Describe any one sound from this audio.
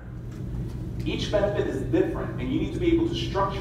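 A man speaks to a room through a microphone.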